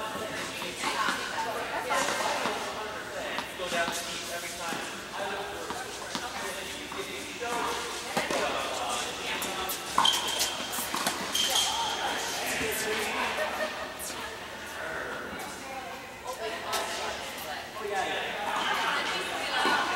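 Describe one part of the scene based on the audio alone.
Tennis rackets strike balls in a large echoing indoor hall.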